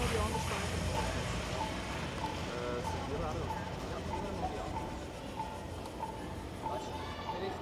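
Dancers' feet tap and shuffle on a wooden stage in a large hall.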